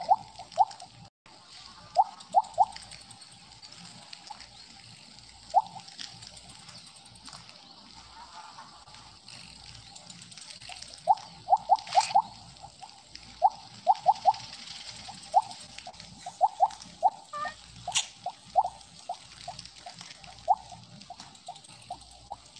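Short rising chirps from a video game sound again and again.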